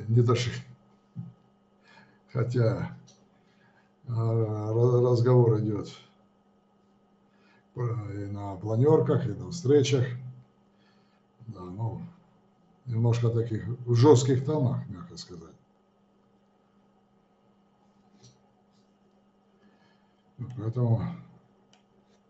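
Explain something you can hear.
An elderly man speaks calmly, with pauses, close to a microphone.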